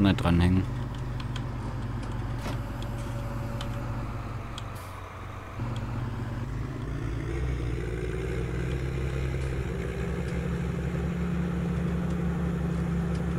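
A tractor engine rumbles steadily and rises in pitch as it drives.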